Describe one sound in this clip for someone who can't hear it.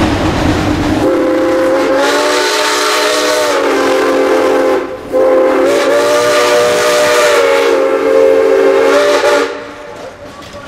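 A steam locomotive's whistle blows loudly in two long blasts.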